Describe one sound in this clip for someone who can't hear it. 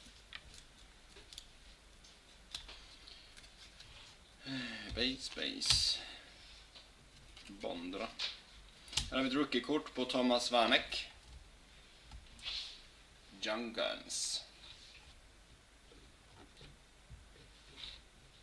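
Trading cards rustle and slide against each other in a hand.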